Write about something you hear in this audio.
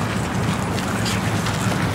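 Stroller wheels roll over gravel.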